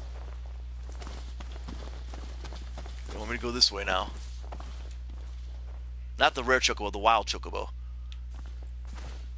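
Footsteps crunch softly on grass and dirt.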